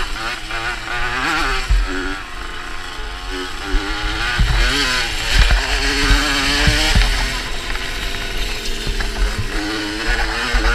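A motocross engine revs and whines up and down close by.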